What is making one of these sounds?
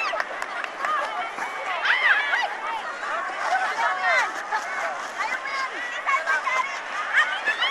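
A crowd of young women shout and laugh excitedly outdoors.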